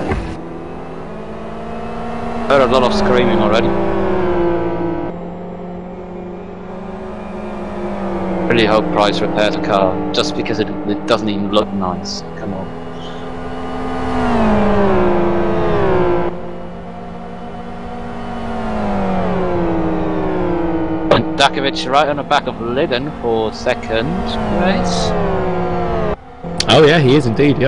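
Racing car engines roar and whine, rising and falling in pitch as they shift gears.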